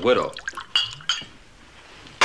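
Glass clinks as drink is poured into a glass.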